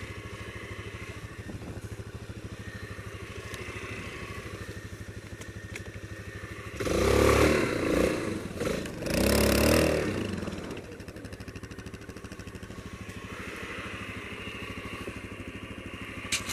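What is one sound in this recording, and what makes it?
A single-cylinder four-stroke quad bike engine labours as the quad bike climbs through deep snow.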